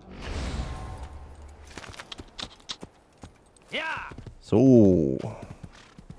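A horse's hooves clop on a dirt trail.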